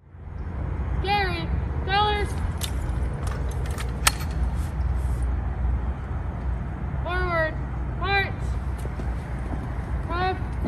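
A young man shouts drill commands outdoors.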